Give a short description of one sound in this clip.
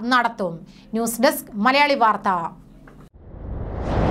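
A young woman speaks clearly into a microphone, like a news reader.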